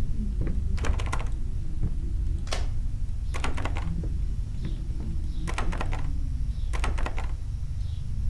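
A locked door rattles as its handle is tried.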